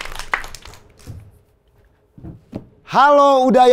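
Footsteps thud softly on a stage floor.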